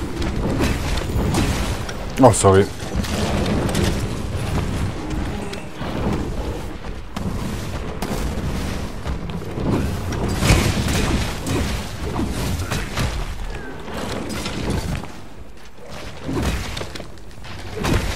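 A weapon clashes and strikes against a monster's hide.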